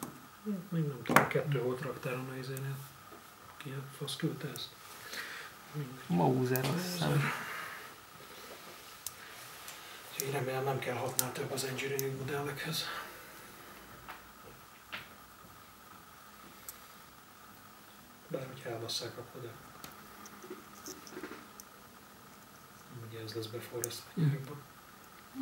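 Small metal parts click and snap against each other.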